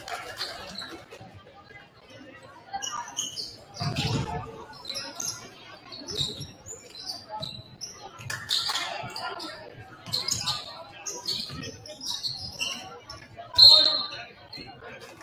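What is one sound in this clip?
A crowd murmurs and calls out in a large echoing gym.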